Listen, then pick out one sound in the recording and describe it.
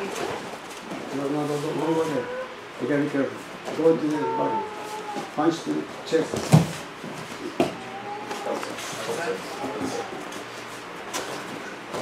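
A man speaks calmly, giving instructions.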